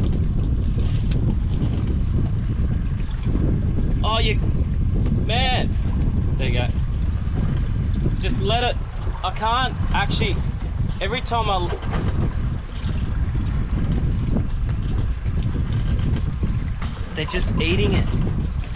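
A fishing reel clicks as a man winds in line.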